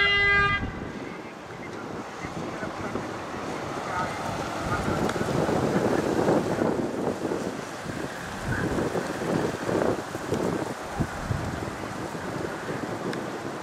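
An ambulance engine hums as it drives slowly past.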